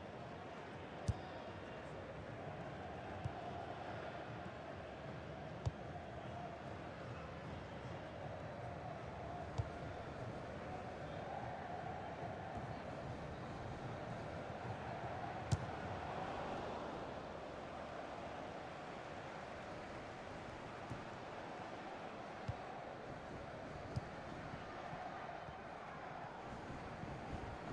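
A stadium crowd murmurs and roars steadily throughout.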